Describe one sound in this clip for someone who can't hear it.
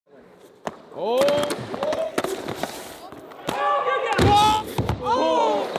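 Young men shout and cheer nearby.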